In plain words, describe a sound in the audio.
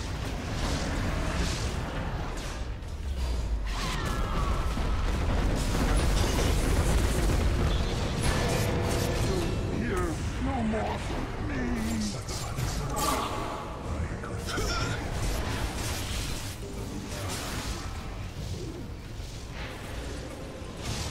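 Video game battle sounds clash with magic blasts and hits.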